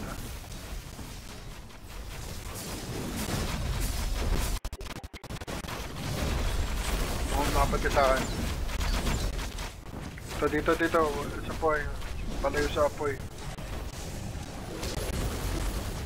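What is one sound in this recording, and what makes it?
Explosions and magic blasts boom and crackle in a game battle.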